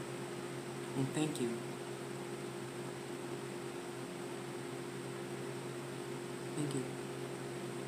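A middle-aged woman speaks a few short words close by.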